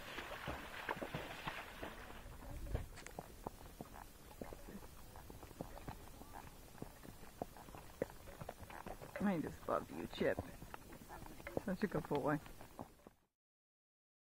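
Horse hooves thud steadily on a dirt trail.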